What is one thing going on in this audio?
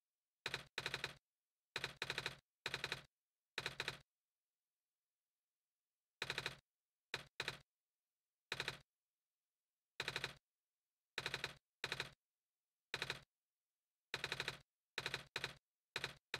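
Short electronic blips chatter in quick bursts as game dialogue text types out.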